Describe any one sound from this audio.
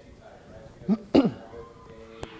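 A man coughs.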